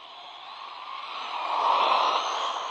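A toy car's electric motor whines loudly as it speeds past.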